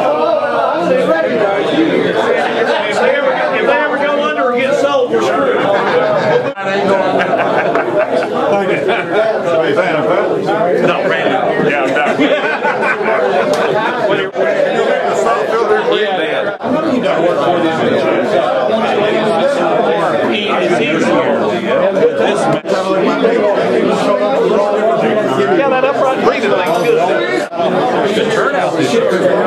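Middle-aged and older men chat over one another with animation close by.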